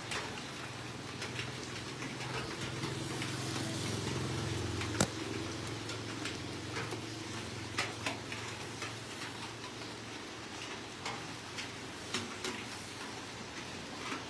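A basting brush dabs and scrapes over the crackling skin of a spit-roasted pig.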